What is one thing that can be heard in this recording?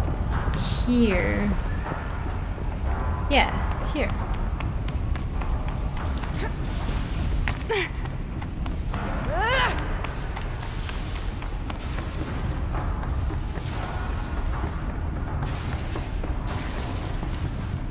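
Footsteps patter quickly over hard ground.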